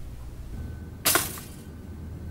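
Toast pops up from a toaster with a sharp click.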